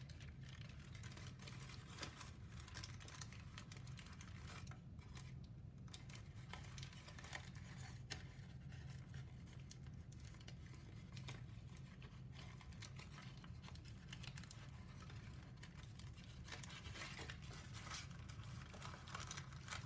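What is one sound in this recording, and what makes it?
Stiff paper crinkles and rustles as hands fold and crease it up close.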